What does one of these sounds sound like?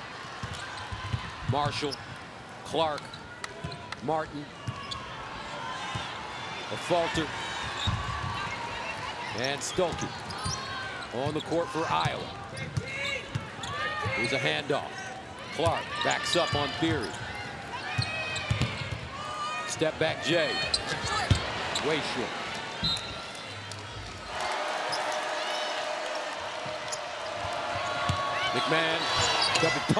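Sneakers squeak sharply and repeatedly on a hardwood court.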